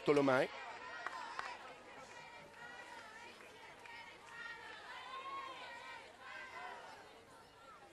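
A large crowd chatters and cheers in the stands.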